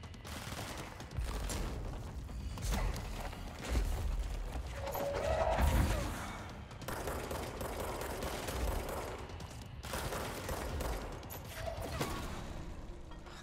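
Gunshots and explosions crack and boom rapidly.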